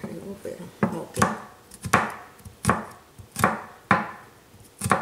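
A knife chops rapidly on a wooden board.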